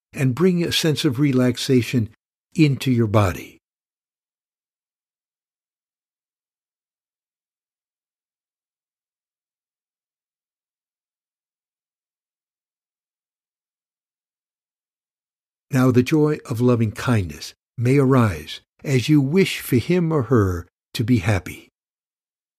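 A middle-aged man speaks calmly and warmly, close to a microphone.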